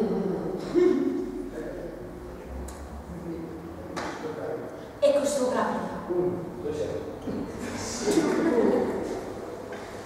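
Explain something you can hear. A young woman speaks expressively.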